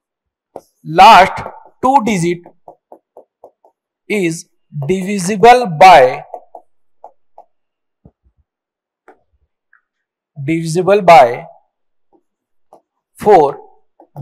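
A man speaks with animation, close to a microphone, in bursts with pauses.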